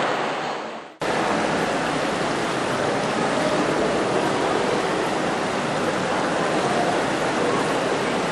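Water splashes softly as figures move through a pool.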